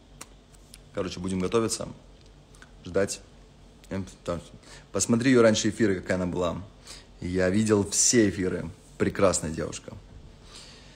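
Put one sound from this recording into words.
A young man speaks with animation close to a clip-on microphone.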